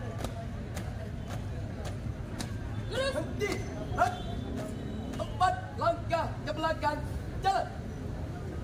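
Boots stamp on a hard court in marching steps.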